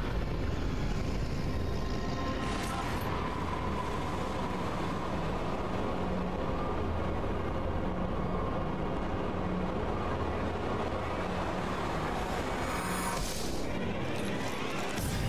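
A deep, menacing rumble drones on steadily.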